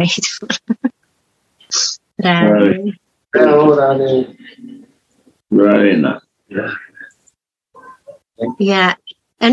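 A woman speaks warmly and cheerfully over an online call.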